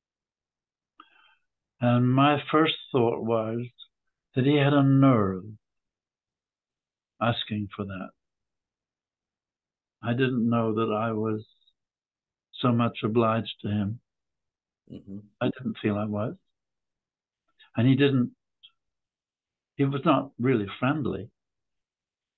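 An elderly man speaks slowly and calmly over an online call, with pauses.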